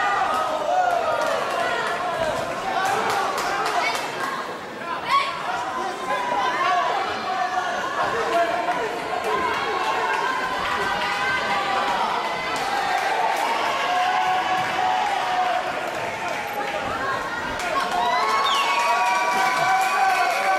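A crowd in a large echoing hall shouts and cheers.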